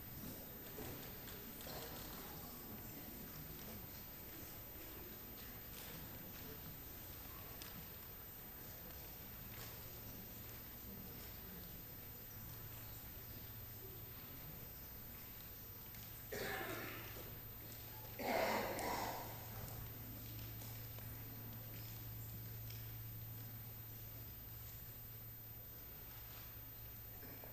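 An audience murmurs softly in a large echoing hall.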